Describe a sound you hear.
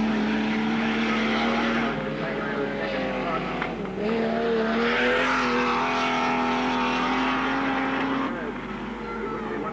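A racing car engine roars loudly as it speeds past.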